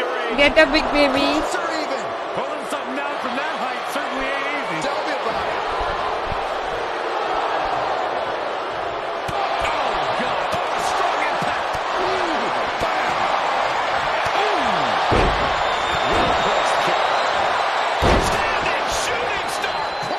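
A large crowd cheers and roars steadily in an echoing arena.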